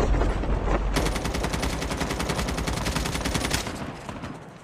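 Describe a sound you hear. A rifle fires rapidly in quick bursts.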